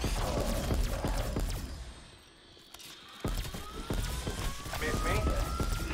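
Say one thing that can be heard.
Zombies growl and snarl.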